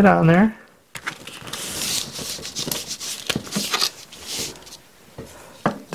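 Sandpaper rustles softly as hands press and smooth it on a table.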